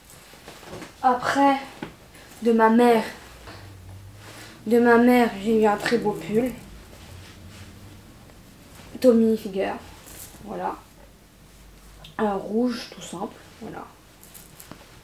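A young woman talks calmly and close to a microphone, in short bursts.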